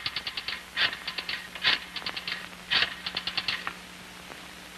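A telephone dial clicks.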